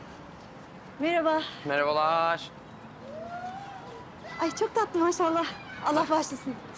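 A young woman laughs and talks cheerfully nearby.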